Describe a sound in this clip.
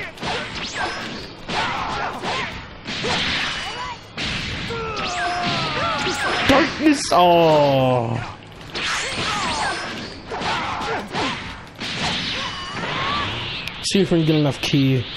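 Energy blasts boom and crackle.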